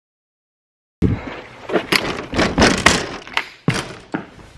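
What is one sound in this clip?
A wooden door creaks and rattles open.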